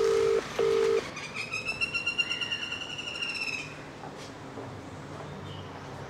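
Footsteps walk on a paved path.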